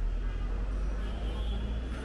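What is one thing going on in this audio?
Puffed rice pours into a plastic mug.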